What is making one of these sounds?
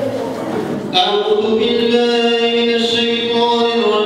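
A young man sings into a microphone, heard through loudspeakers.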